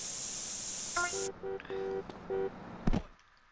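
A short electronic chime plays a few bright notes.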